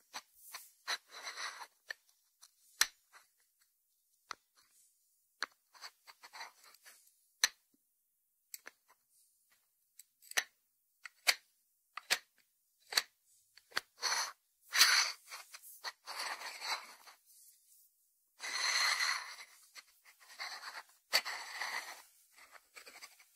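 A ceramic dish scrapes and rubs against a wooden board.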